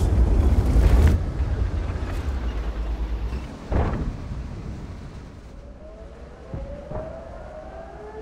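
Branches rustle and crack as a tank pushes through bushes.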